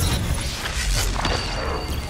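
A blast of energy roars and crackles.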